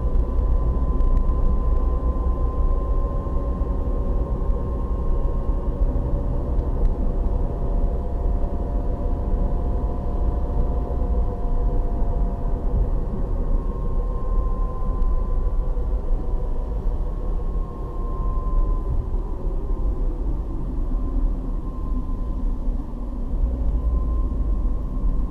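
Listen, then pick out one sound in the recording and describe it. A car engine hums steadily from inside the car, its pitch slowly rising and falling.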